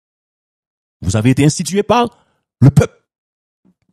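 A man speaks with animation into a microphone, heard close up.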